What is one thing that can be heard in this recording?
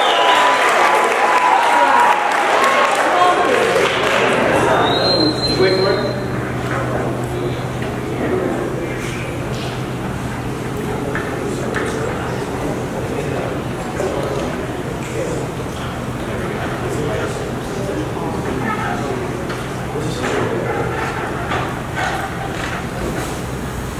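Young men sing together into microphones in a large, echoing hall.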